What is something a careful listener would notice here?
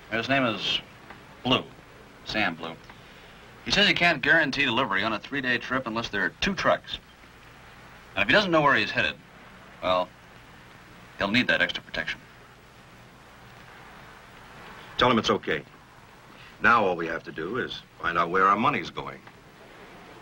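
Another man answers calmly up close.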